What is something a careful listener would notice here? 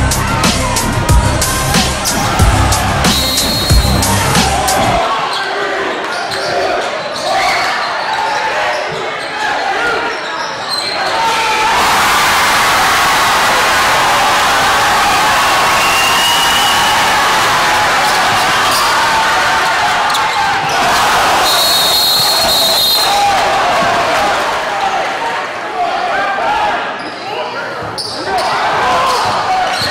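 A large crowd cheers and roars in an echoing gym.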